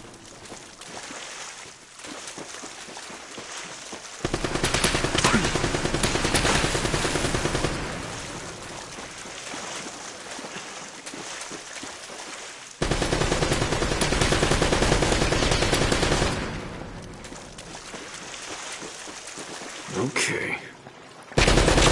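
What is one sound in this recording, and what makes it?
Water splashes as someone wades quickly through it.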